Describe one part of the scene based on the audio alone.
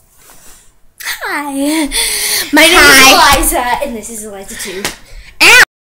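A teenage girl shouts and squeals loudly close by, heard through a laptop microphone.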